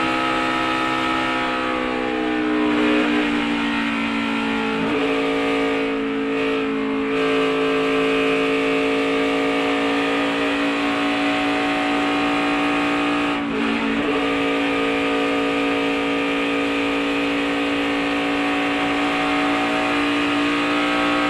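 A race car engine roars loudly and steadily at high speed, close by.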